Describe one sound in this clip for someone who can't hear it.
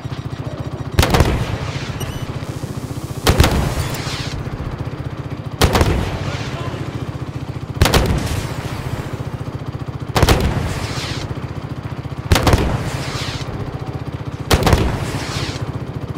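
Loud gunshots ring out at regular intervals, echoing.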